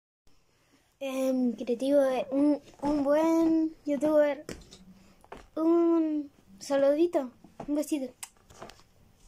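A young boy talks with animation close to a phone microphone.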